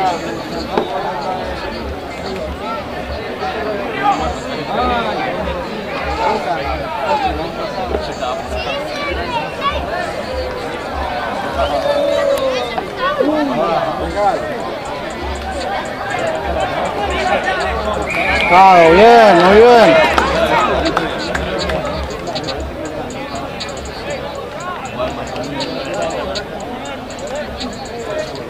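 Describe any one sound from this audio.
Young men shout to each other outdoors, some distance off.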